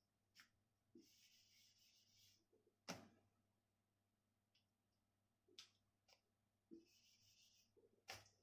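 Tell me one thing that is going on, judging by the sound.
A board eraser rubs briskly across a whiteboard.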